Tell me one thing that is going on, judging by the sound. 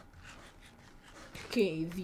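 Crunchy chewing sounds as bread is eaten.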